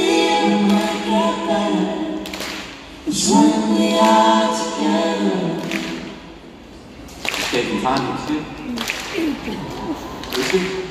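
A man sings into a microphone, amplified through loudspeakers in a large echoing arena.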